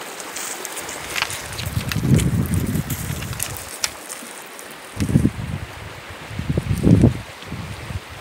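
Stones crunch and clatter under a dog's paws.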